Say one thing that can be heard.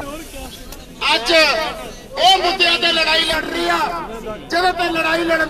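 A man speaks forcefully through a microphone to a crowd.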